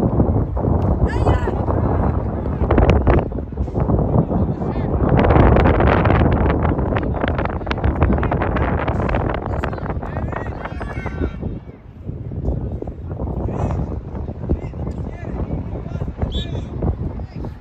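Young players shout in the distance across the field.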